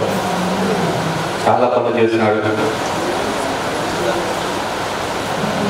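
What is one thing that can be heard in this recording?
A middle-aged man speaks calmly into a microphone, heard through loudspeakers.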